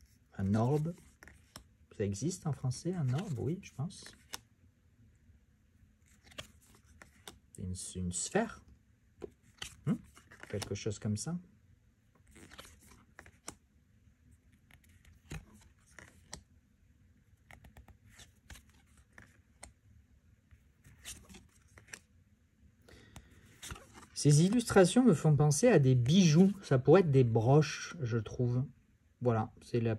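Stiff playing cards slide and tap softly against each other as they are handled.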